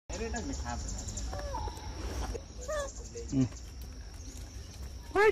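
Monkeys squeak and chirp nearby.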